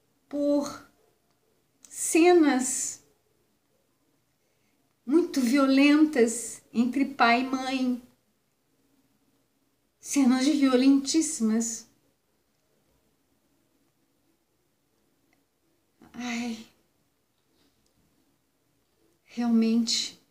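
A woman speaks close by in short, halting phrases with pauses.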